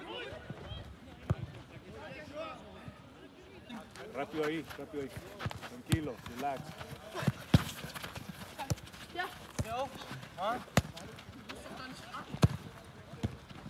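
A football is kicked with dull thuds on grass.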